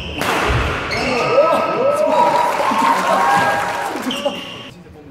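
Young men call out and laugh nearby.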